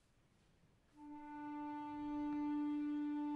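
An orchestra sounds a long, steady note.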